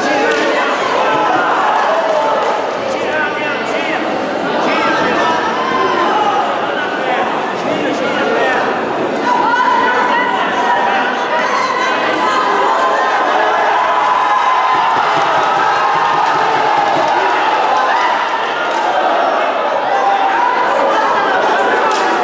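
A crowd shouts and cheers loudly around the fighters.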